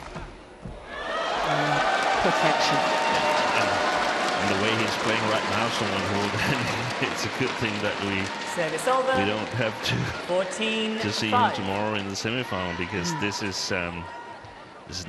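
A large crowd cheers and shouts loudly in a big hall.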